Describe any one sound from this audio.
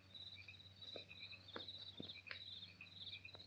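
A woman's footsteps run quickly on pavement.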